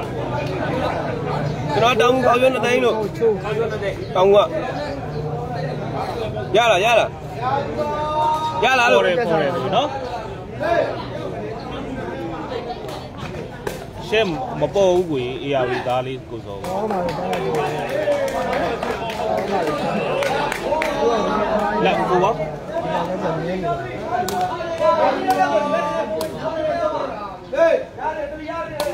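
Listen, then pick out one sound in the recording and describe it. A crowd of spectators chatters and calls out all around, outdoors.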